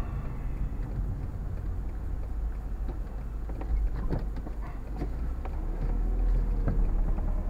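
Tyres roll slowly over the road.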